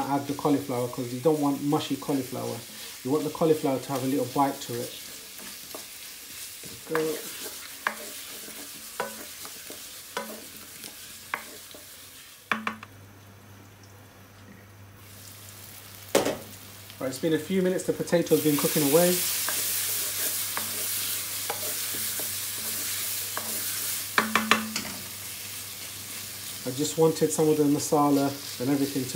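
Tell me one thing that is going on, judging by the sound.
A wooden spoon scrapes and knocks against a metal pan.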